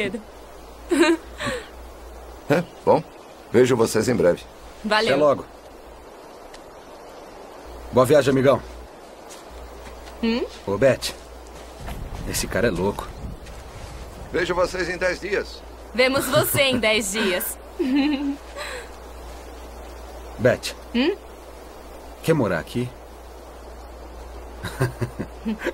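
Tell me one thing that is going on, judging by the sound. A young man talks with a smile nearby.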